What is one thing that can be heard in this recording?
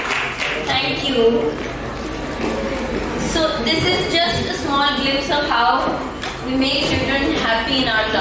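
A young woman speaks calmly through a microphone in a large hall.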